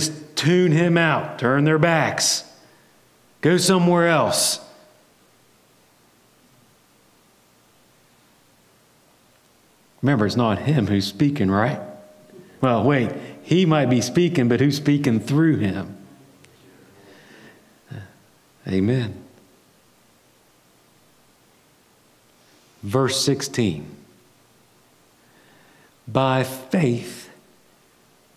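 A man speaks in bursts with pauses, through a microphone in a large room.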